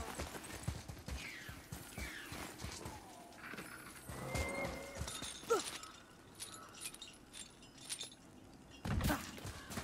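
A heavy metal chain rattles and clinks.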